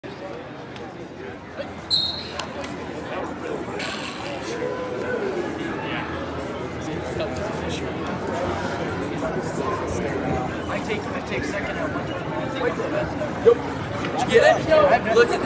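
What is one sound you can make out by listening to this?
Wrestling shoes squeak on the mat.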